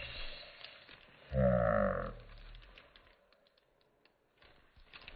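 Plastic film crinkles and rustles under hands.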